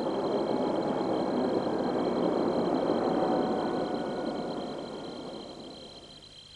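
A helicopter engine hums nearby.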